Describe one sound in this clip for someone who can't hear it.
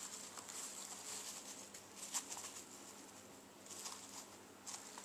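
Plastic wrap crinkles and rustles under hands.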